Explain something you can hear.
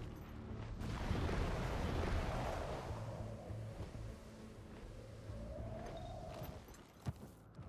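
Large wings whoosh through the air as a creature glides.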